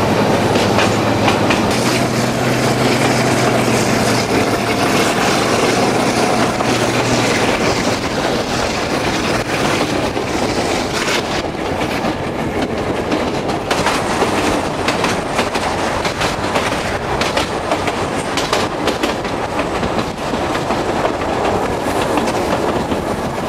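Train wheels rattle and clack steadily on the rails.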